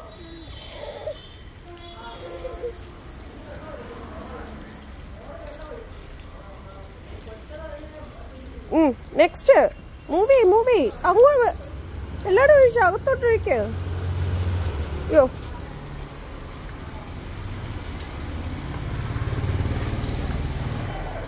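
Water from a garden hose splashes onto leaves.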